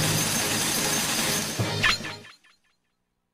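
A game score counter ticks rapidly as points add up.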